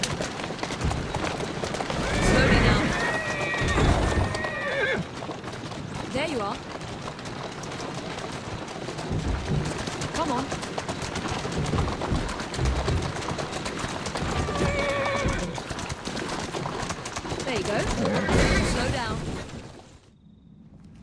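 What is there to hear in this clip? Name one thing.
Carriage wheels rattle and rumble over cobblestones.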